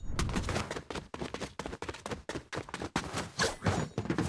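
Footsteps patter quickly over rocky ground.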